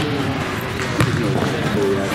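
A ball thumps off a player's head.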